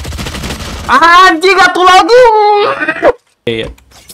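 A young man shouts loudly and excitedly into a microphone.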